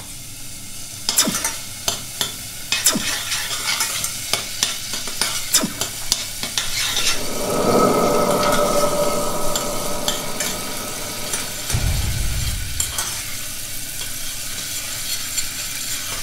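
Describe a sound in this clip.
A spoon stirs and clinks in a pot.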